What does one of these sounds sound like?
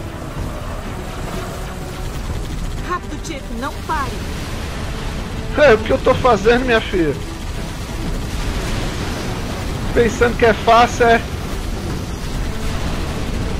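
A vehicle engine hums in a game.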